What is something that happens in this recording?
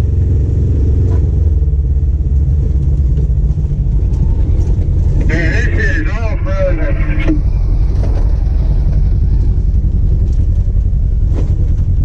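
A side-by-side UTV engine rumbles as the vehicle crawls slowly over rocks.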